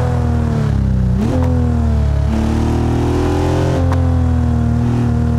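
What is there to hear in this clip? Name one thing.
A sports car engine roars at high revs, dropping in pitch with each gear shift.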